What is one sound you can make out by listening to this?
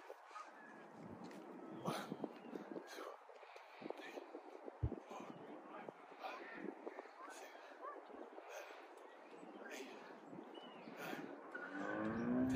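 A young man grunts and breathes hard.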